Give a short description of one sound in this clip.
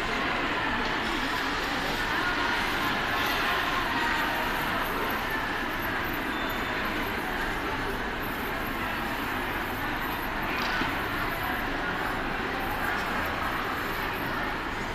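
A heat gun blows with a steady hiss.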